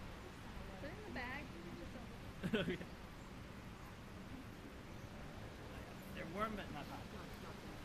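Young women talk quietly in the distance outdoors.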